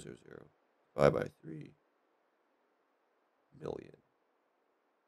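A young man talks with animation, close to a headset microphone, in short bursts.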